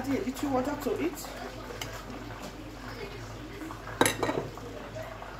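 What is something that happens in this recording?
A piece of fish drops into a pot of stew with a soft splash.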